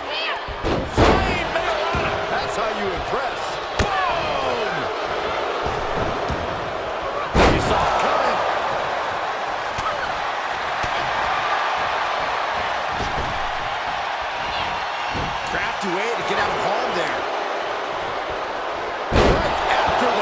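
Heavy thuds of bodies slamming onto a wrestling ring mat ring out.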